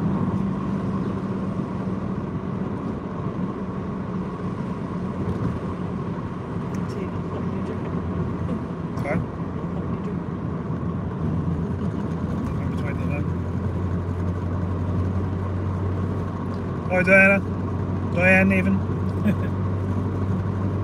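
Tyres roll along a road with a steady rumble.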